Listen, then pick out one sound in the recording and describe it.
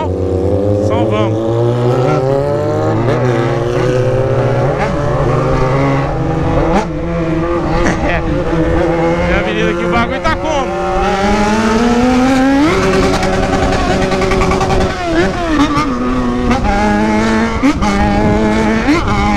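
A motorcycle engine roars and revs up and down as it rides along.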